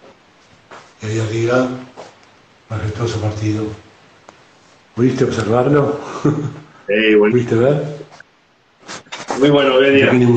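A middle-aged man talks calmly over an online call.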